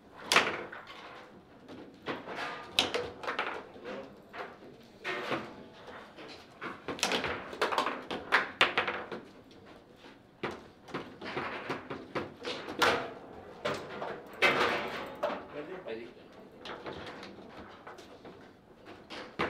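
Foosball rods spin and the ball clacks sharply against the table.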